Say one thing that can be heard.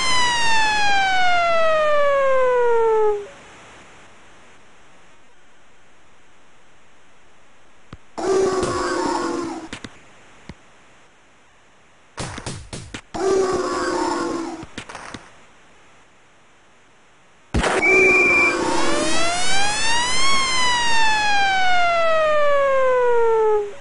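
An electronic goal siren blares and sweeps down in pitch.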